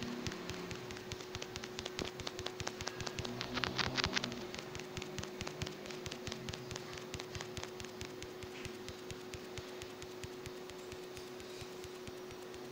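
Magic blasts crackle and burst loudly.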